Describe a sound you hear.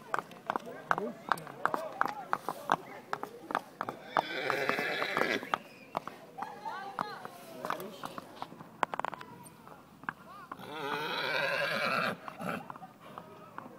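A walking horse's hooves clop on asphalt.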